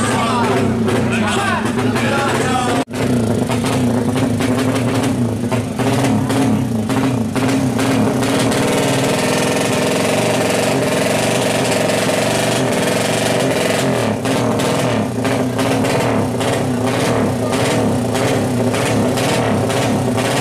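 A motorcycle engine idles and revs loudly, close by.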